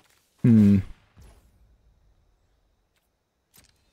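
A magical whoosh sounds.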